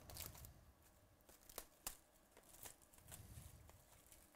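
Cardboard packs scrape and tap against each other.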